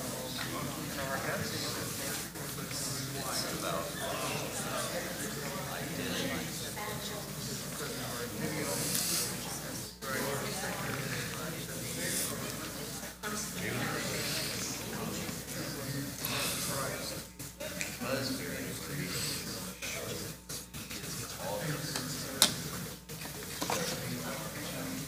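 A man speaks calmly to an audience in a large echoing hall, heard through a microphone.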